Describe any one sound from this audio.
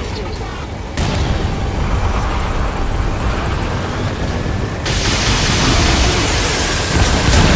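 A heavy vehicle engine rumbles low and steady.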